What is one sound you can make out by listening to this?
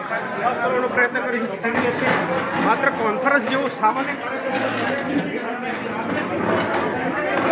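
A crowd of men and women shouts and clamours nearby.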